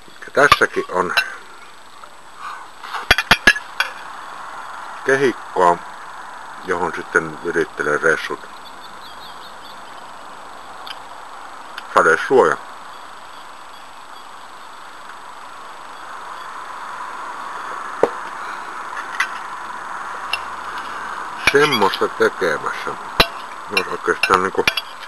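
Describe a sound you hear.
An elderly man talks calmly, close to the microphone.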